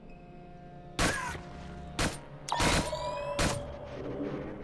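Sharp bangs ring out in quick succession.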